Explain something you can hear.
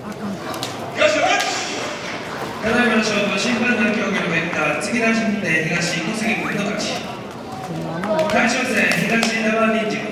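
A man calls out in a long, drawn-out chant that echoes through a large hall.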